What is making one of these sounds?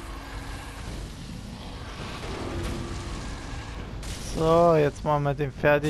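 A fireball bursts with a loud roar.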